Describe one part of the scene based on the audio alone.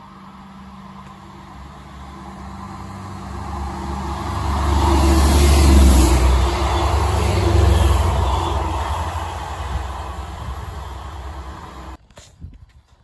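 A diesel train approaches and rumbles past close by, growing louder and then slowly fading.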